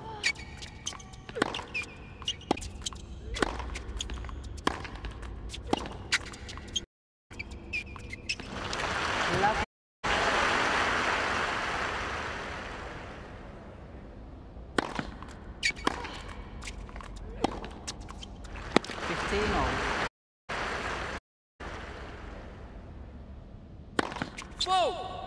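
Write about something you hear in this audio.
A tennis racket strikes a ball back and forth in a rally.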